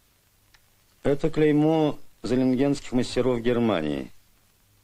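An elderly man speaks slowly and deliberately.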